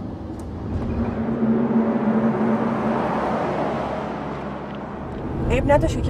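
A car drives past on the road with a rising and fading whoosh.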